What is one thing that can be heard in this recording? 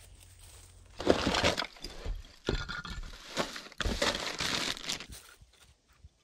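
Plastic packets rustle and crinkle close by.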